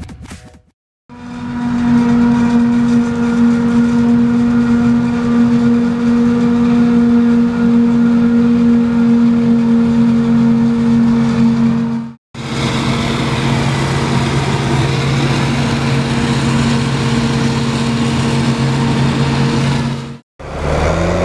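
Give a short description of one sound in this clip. A large harvesting machine's engine drones loudly and steadily.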